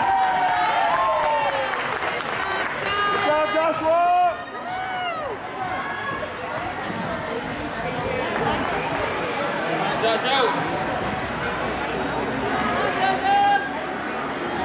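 Spectators whistle and cheer loudly.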